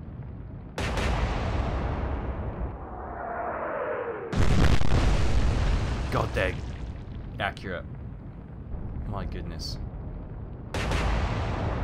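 Heavy naval guns fire with a deep, booming blast.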